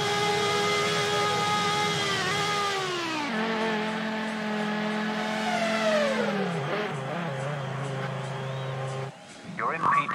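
A racing car engine whines and slows down.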